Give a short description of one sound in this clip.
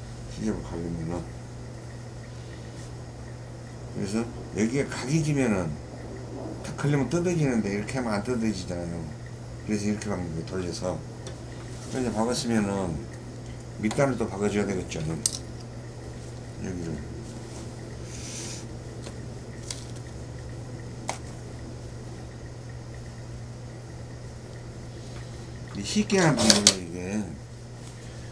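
A middle-aged man explains calmly, close to a microphone.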